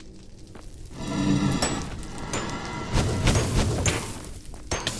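Flames whoosh and roar.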